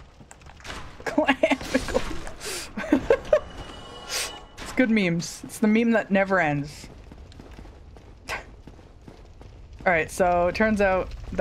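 A young woman talks and laughs with animation, close to a microphone.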